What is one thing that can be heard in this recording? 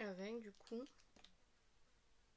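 A young woman speaks calmly and close by.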